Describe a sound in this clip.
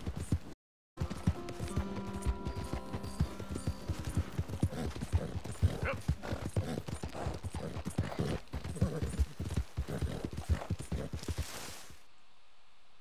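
A horse gallops, hooves pounding on soft ground.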